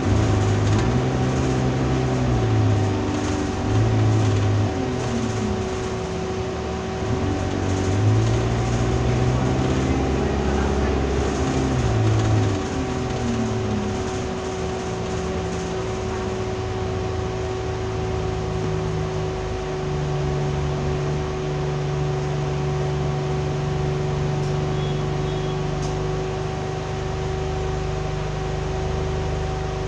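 A bus interior rattles and whines as it moves.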